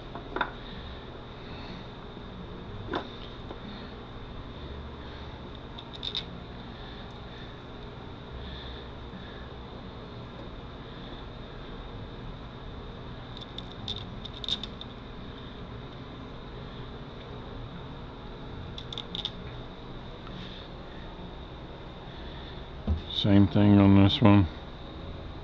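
Metal parts clink and tap together as they are handled.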